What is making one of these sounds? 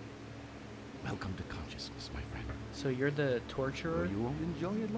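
A man speaks slowly in a low, menacing voice.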